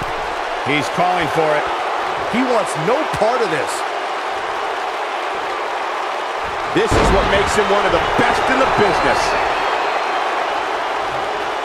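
A large crowd cheers and roars throughout in a big echoing arena.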